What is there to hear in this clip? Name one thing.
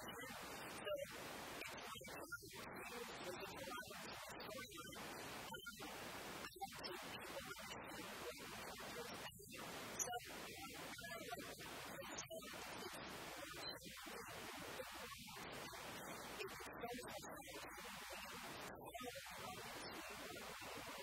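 A young woman talks calmly into a microphone, close by.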